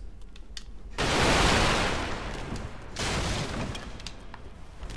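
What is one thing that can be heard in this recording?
Wooden crates smash and clatter apart.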